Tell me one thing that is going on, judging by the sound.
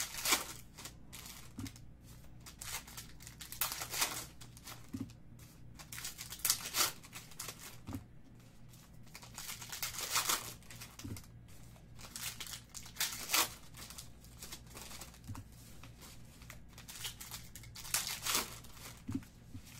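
Foil card wrappers crinkle and tear as hands open packs.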